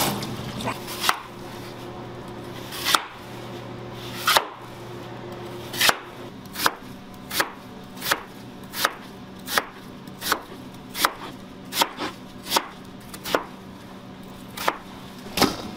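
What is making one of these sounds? A knife chops through a radish onto a cutting board in sharp, regular knocks.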